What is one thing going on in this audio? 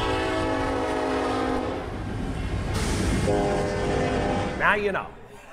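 A diesel locomotive rumbles past.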